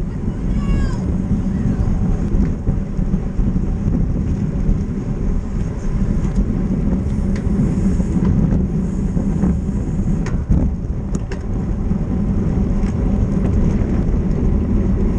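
A bicycle freewheel clicks.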